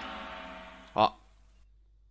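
A short game sound effect clicks.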